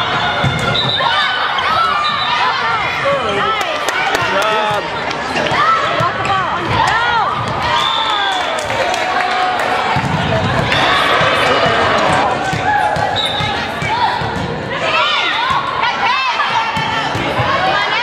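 A volleyball thumps against hands and arms.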